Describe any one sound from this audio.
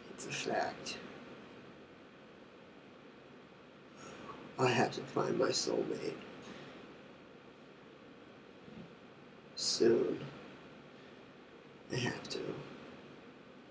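A young man speaks casually in short bursts, close by.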